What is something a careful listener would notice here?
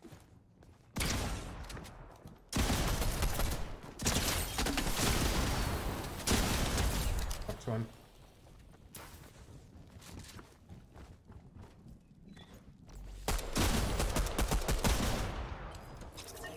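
Shotgun blasts go off repeatedly, loud and booming.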